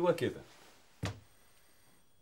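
A telephone receiver clatters down onto its cradle.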